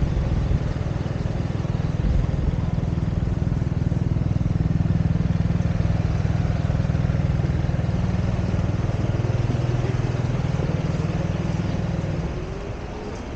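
A motor scooter's engine idles and putters close by.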